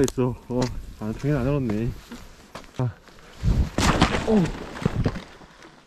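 Footsteps crunch and thud on dry sandy ground.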